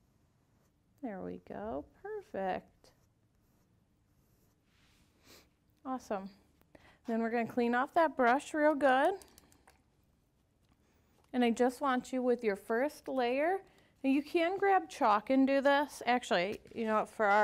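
A woman talks calmly and clearly into a close microphone.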